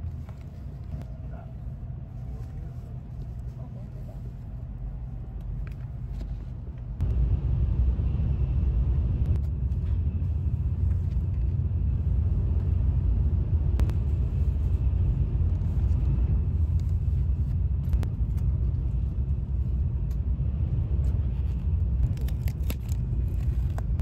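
A paper wrapper rustles as hands handle a boxed meal.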